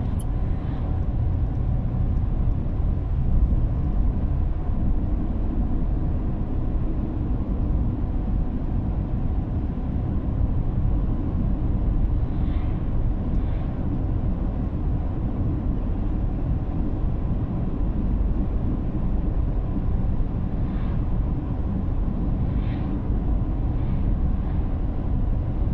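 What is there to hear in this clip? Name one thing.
Tyres rumble low and steady on the road.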